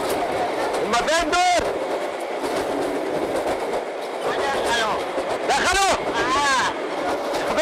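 A middle-aged man shouts with agitation close by.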